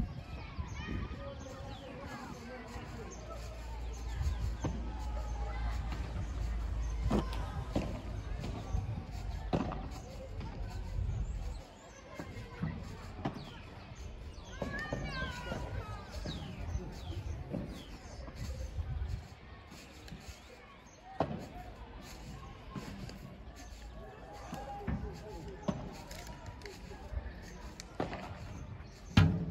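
Sneakers squeak on the court surface.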